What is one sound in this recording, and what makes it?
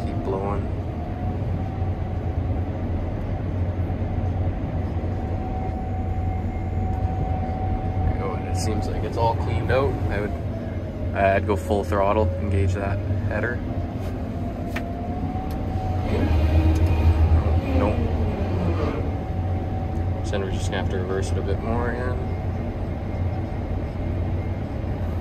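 A combine harvester drones while harvesting, heard from inside the cab.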